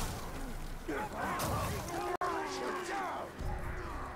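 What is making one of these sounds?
Swords clash in a close fight.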